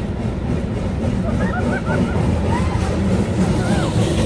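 Young women chat and laugh nearby.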